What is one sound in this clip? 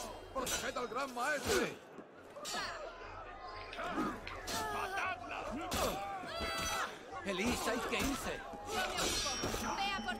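Swords clash in quick sharp strikes.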